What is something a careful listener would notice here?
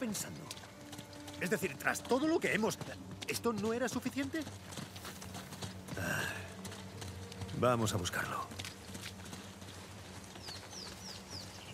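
Footsteps run over stone and through undergrowth.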